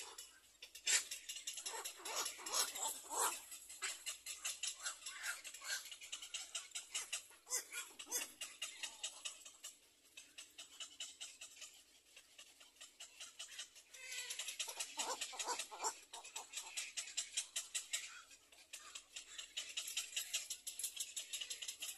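Young birds in a nest chirp in quick, steady bursts.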